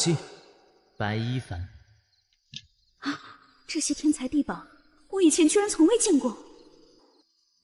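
A young woman exclaims in surprise, close to a microphone.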